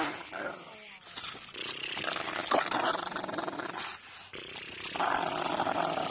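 A large dog pants heavily with its mouth open.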